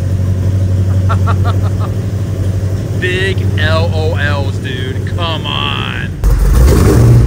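A large engine idles with a low, steady rumble.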